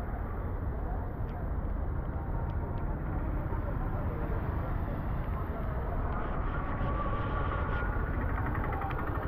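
Wind rumbles steadily.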